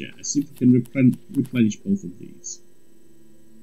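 An elderly man speaks with animation into a microphone, close up.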